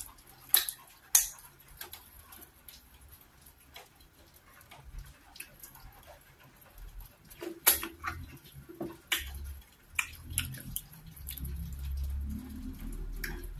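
Wet food squelches and smacks between a young woman's fingers.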